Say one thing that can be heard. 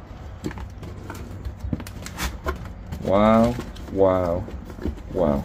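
Stiff cardboard cards rustle and click as a hand flips through them.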